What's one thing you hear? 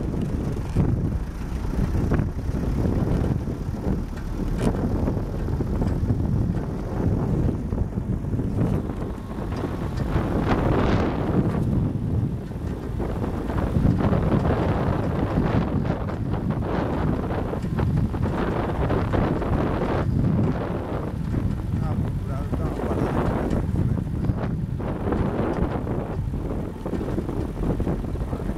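Tyres crunch and bump over a rough dirt road.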